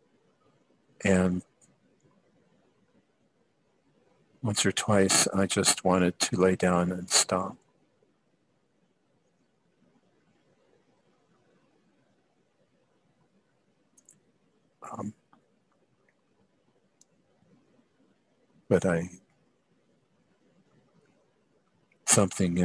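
A man speaks calmly through a headset microphone over an online call, in short bursts.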